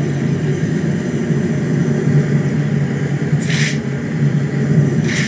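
A deep rumble drones steadily.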